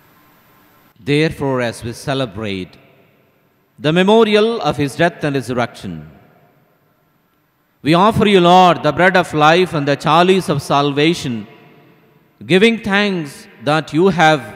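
A man speaks with animation through a microphone in a large echoing hall.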